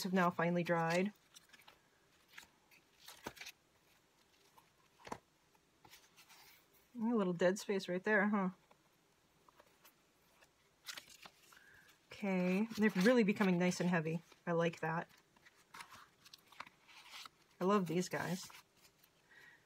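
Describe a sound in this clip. Paper pages rustle as they are turned one after another.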